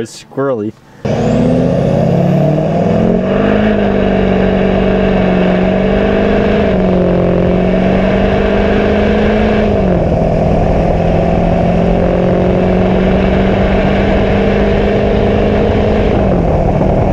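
A truck engine roars steadily at speed, its pitch shifting now and then.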